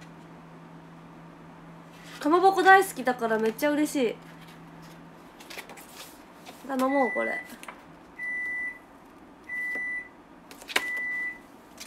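Paper cards rustle in hands.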